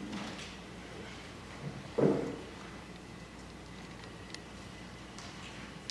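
Footsteps thud on a wooden floor in an echoing hall.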